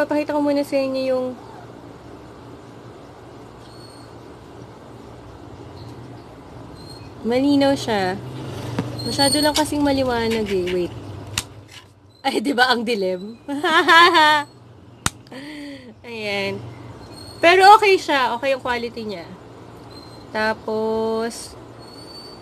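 A young woman talks close to the microphone in a lively way.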